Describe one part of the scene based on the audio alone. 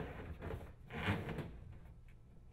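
A rubber hose scrapes and rustles as it is pushed through a hole.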